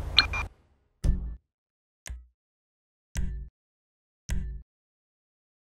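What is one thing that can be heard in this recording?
Short menu beeps sound one after another.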